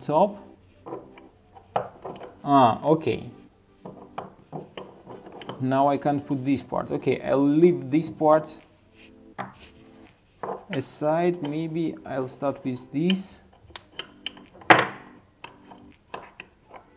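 Wooden puzzle pieces knock and click against a wooden box.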